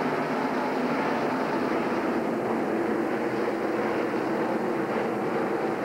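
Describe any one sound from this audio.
A large crowd cheers outdoors.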